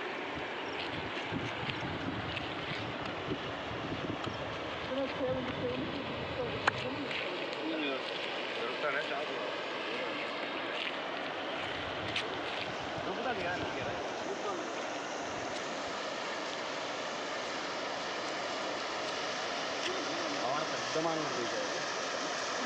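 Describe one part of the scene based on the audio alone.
Floodwater rushes and roars steadily outdoors.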